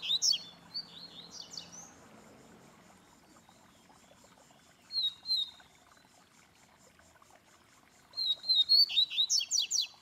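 A caged bird sings in short, bright, chirping phrases close by.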